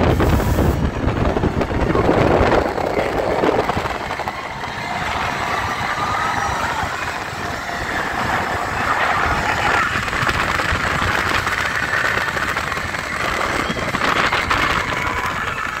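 A ride car rumbles and whooshes along a track with strong wind rushing past.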